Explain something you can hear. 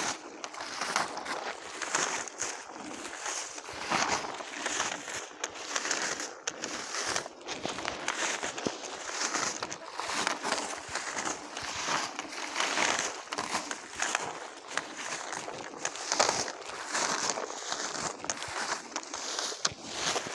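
Wind rustles through the leaves of the trees.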